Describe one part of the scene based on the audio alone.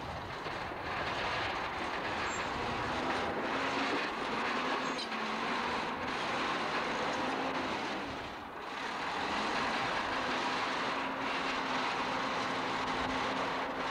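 A bulldozer blade scrapes and pushes dirt.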